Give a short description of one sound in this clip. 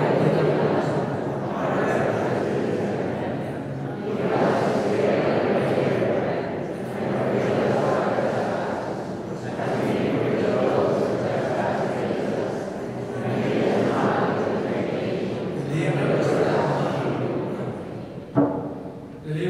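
A large crowd sings together, echoing through a big hall.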